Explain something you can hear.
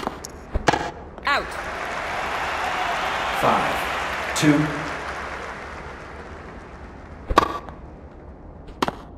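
A tennis ball is struck with a racket, again and again.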